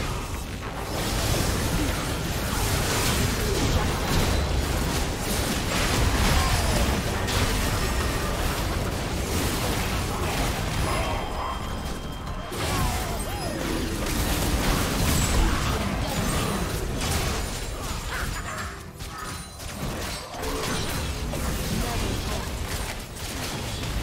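Game spell effects and impacts clash and crackle in a busy fight.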